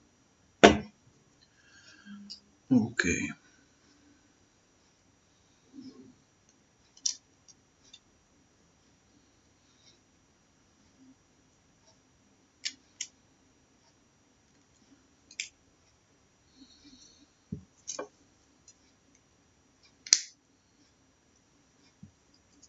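Small plastic pieces click and snap together in someone's hands.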